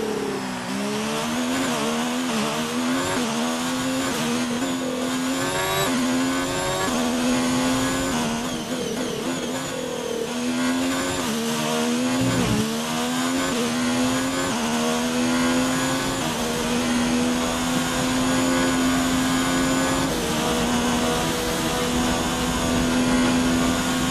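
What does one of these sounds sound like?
A racing car engine screams loudly, revving up through the gears and dropping in pitch at each shift.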